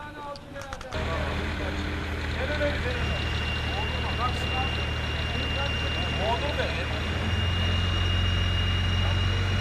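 A truck engine idles with a low steady rumble.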